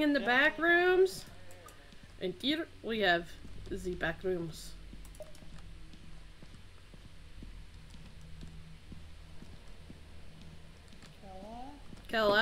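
A young woman talks animatedly into a microphone, close up.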